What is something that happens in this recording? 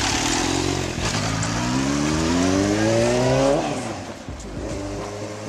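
A motorcycle accelerates away, its engine rising in pitch and fading into the distance.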